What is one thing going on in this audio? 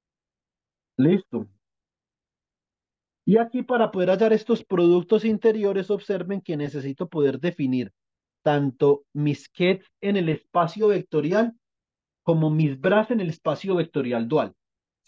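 A man explains calmly over an online call, in short bursts with pauses.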